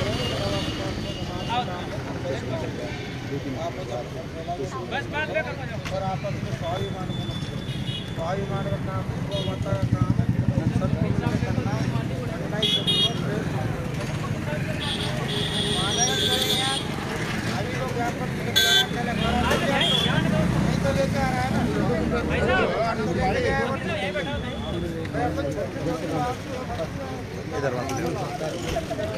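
A crowd of men and women murmurs and talks at once outdoors.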